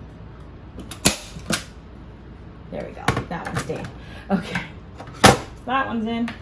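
A staple gun snaps sharply several times.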